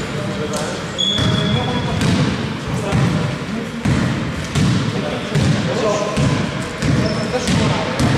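Sneakers squeak sharply on a wooden court in a large echoing hall.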